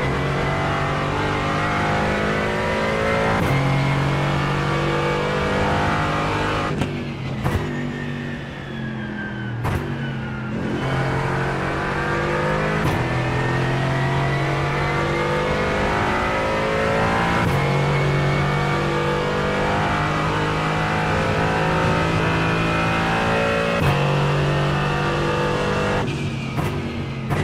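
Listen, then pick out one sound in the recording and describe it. A race car engine roars loudly, revving up through the gears.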